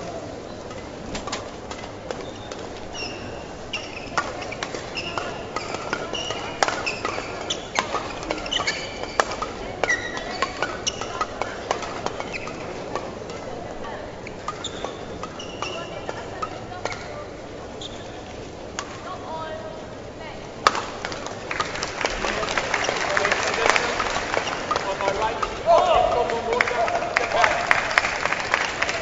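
Badminton rackets strike a shuttlecock in a large hall.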